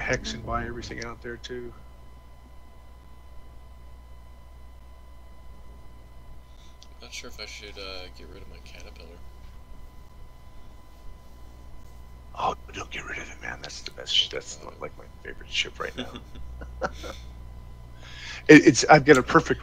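A young man talks casually into a close microphone, with pauses.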